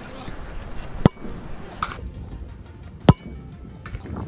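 A football is kicked hard with a sharp thud.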